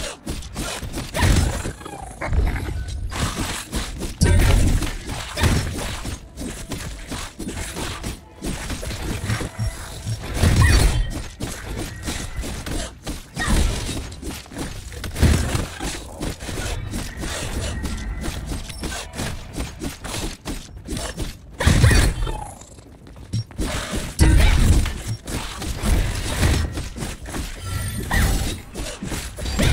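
Magical attacks whoosh and burst with deep booms in quick bursts.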